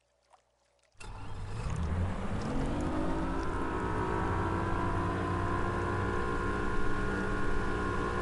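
A boat's outboard motor starts up and runs with a steady drone, rising in pitch.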